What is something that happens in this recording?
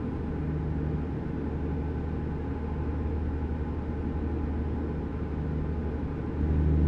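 A truck engine hums steadily with a low rumble.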